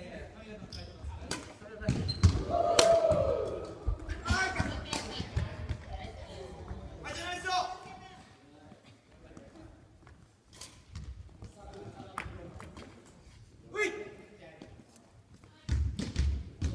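Shuttlecocks are hit with rackets in sharp pops, echoing in a large hall.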